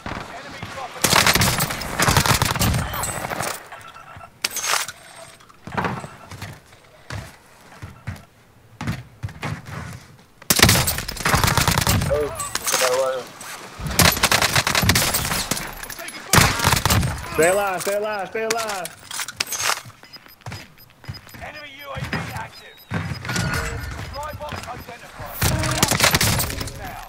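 A submachine gun fires rapid bursts of shots.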